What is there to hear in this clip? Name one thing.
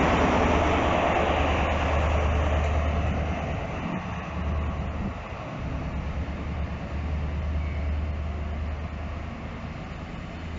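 A diesel train engine roars loudly close by, then fades as the train pulls away.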